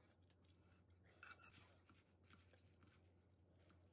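Leaves of lettuce rustle as they are mixed.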